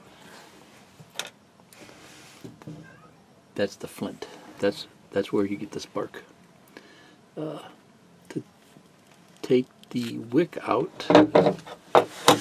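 Small metal parts click and scrape as they are handled.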